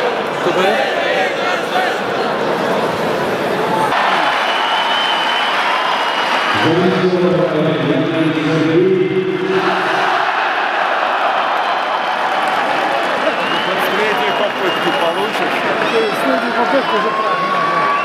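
A crowd roars with a steady noise in a large open stadium.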